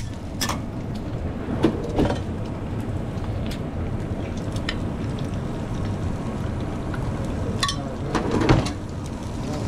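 Metal tools clatter against a griddle now and then.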